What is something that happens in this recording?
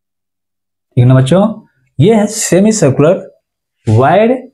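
A man speaks clearly and calmly, close by.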